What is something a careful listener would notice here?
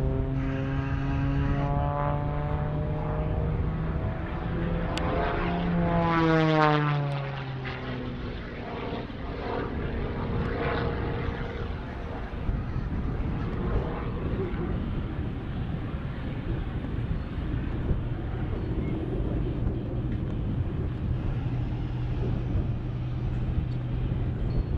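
A propeller plane's engine drones overhead, rising and falling in pitch as it swoops.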